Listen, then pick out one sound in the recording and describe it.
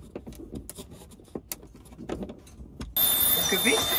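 A screwdriver clicks as it turns a screw.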